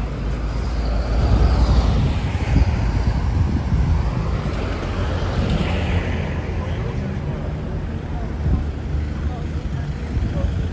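Wind blows outdoors, rumbling steadily.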